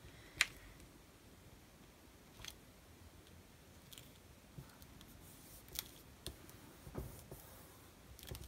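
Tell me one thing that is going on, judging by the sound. Hands rub and press softly on paper.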